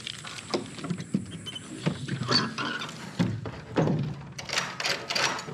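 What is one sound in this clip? A wooden door swings and bumps against its frame.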